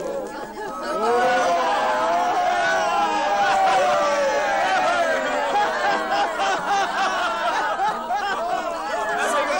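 A crowd of men cheers and shouts loudly.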